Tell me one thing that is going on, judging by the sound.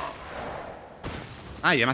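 A sudden impact thuds and shatters.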